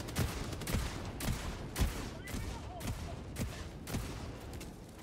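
Heavy explosions boom one after another.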